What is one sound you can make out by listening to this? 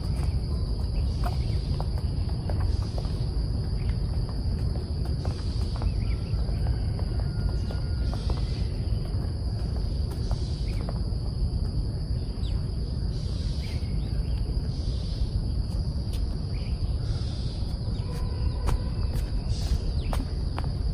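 Sneakers patter quickly on a running track.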